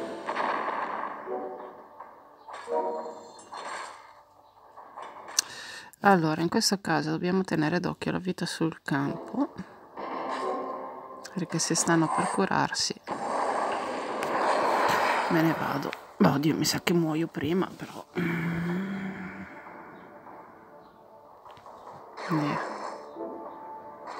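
Electronic game effects chime and whoosh as tiles clear.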